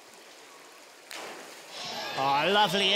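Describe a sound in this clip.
A diver splashes into a pool.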